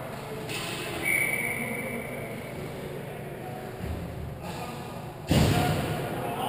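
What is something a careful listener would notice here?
Hockey sticks clack on the ice.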